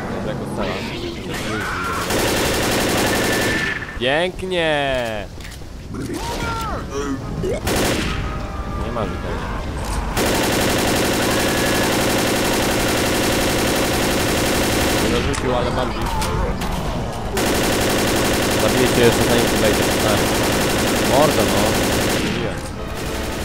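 An automatic rifle fires rapid bursts close by.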